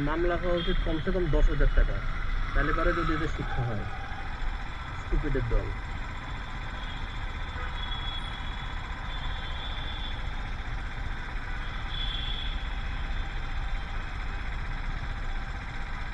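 An auto-rickshaw engine idles close by.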